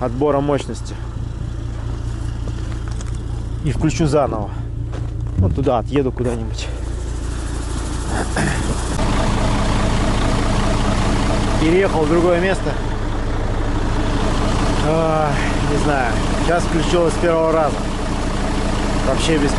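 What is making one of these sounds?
A large diesel truck engine idles with a low, steady rumble.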